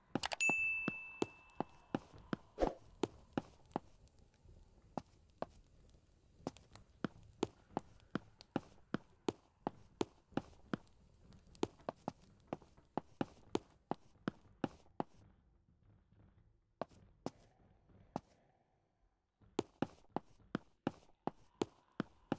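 Footsteps thud steadily on a hard floor.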